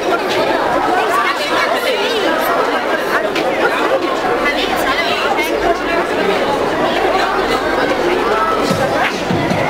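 Many young girls chatter and shout excitedly close by.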